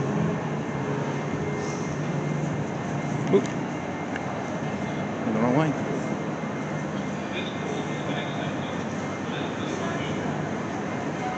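A steady murmur of crowd noise echoes through a large hall.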